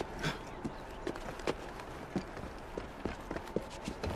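Footsteps thud quickly across a roof.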